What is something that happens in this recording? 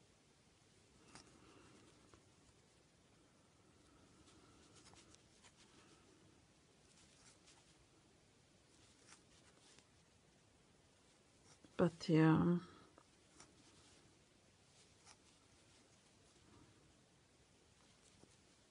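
A crochet hook softly rustles and scrapes through yarn.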